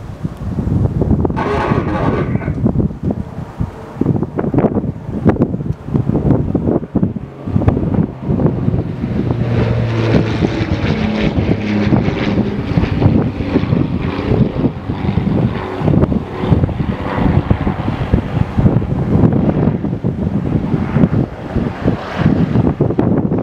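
A propeller plane's engine drones as the plane approaches and lands.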